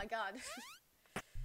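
A young person speaks briefly near a microphone.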